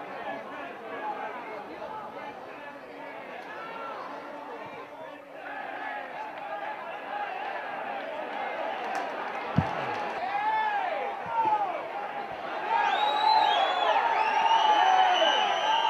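A crowd of spectators shouts and cheers outdoors, growing louder toward the end.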